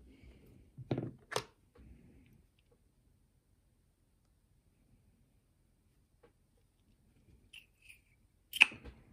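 Small metal tools click and clink against a lock.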